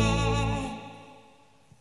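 A young man sings a long held note through a microphone.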